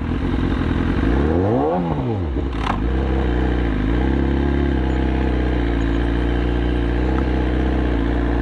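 An inline-four sportbike engine revs and pulls away.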